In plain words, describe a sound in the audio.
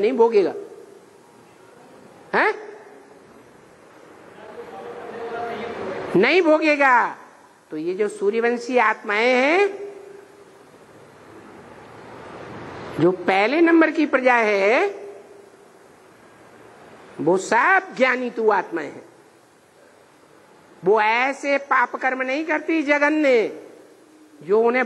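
An elderly man speaks with animation into a close microphone, in bursts with pauses.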